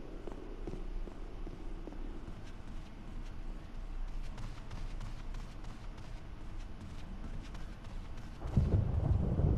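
Footsteps tap on a hard floor and climb wooden stairs.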